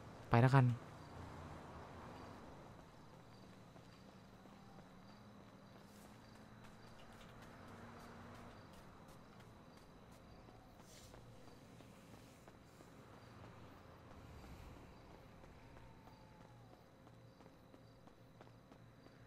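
Footsteps run quickly over ground and pavement.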